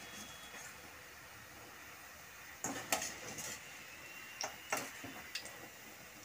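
Hot oil sizzles and bubbles as dough balls fry.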